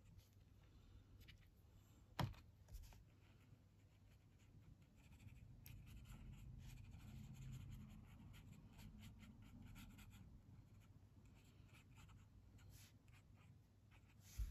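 A brush pen strokes softly across paper.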